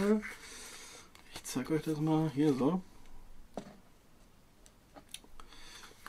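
Paper pages rustle and flap as a booklet is opened and handled.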